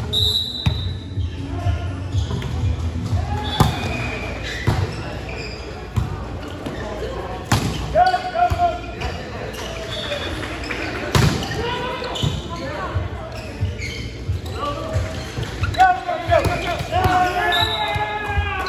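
Young men and women shout and call to each other.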